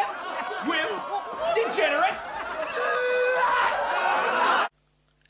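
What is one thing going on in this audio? Men shout angrily over a loudspeaker.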